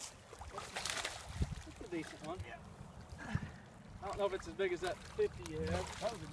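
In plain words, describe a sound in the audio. A fish splashes in the water near the bank.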